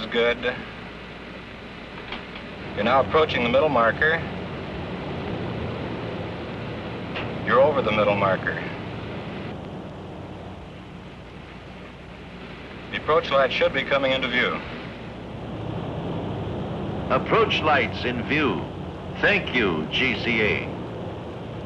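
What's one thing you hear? A man speaks in short bursts over a crackly radio.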